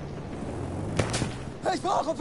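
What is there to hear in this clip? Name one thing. Gunshots boom loudly.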